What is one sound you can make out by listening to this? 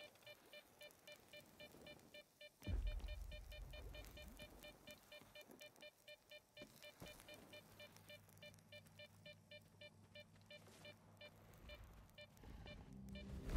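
A handheld detector beeps softly in a steady, even rhythm.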